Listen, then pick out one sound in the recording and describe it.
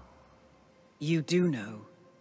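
A second man answers in a low, calm voice.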